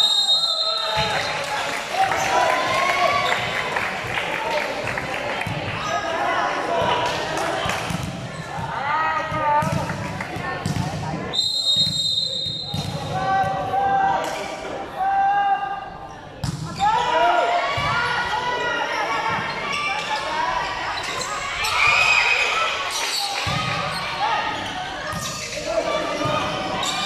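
A crowd of young people cheers and shouts in a large echoing hall.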